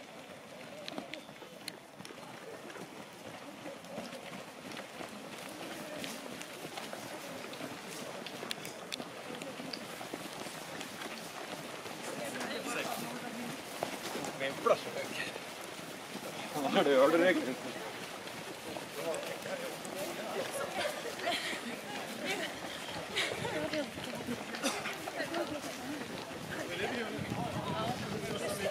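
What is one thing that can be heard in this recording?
A crowd of adult runners chatter and call out nearby, outdoors.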